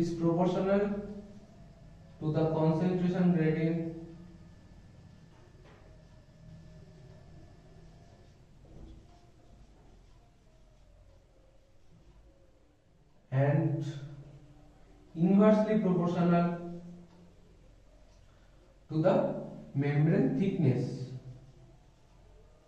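A young man speaks calmly and clearly nearby, in short bursts with pauses.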